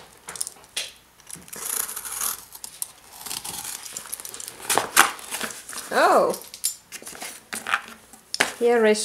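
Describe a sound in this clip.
Cardboard and bubble wrap rustle and crinkle as they are handled.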